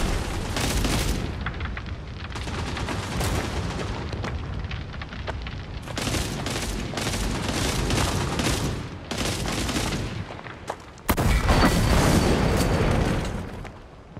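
Gunfire crackles in rapid bursts nearby.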